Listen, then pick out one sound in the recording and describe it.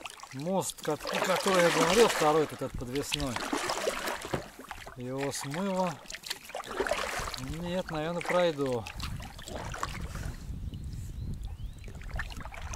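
A paddle splashes and dips in water.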